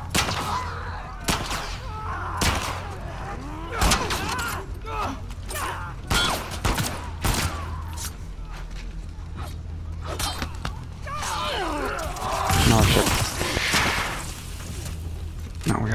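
Heavy blows thud and smack in a close fight.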